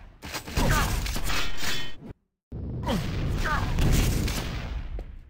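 Gunfire and explosions from a video game boom loudly.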